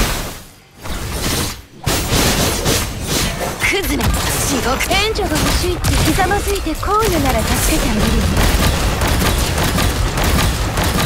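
Sword slashes whoosh and clang rapidly in a game battle.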